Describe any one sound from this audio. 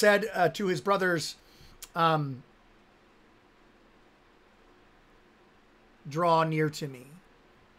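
A man speaks with animation, close to a microphone, in short bursts with pauses.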